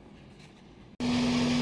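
An engine idles with a steady hum.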